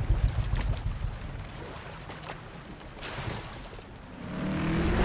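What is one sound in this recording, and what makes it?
Water splashes against a rowing boat.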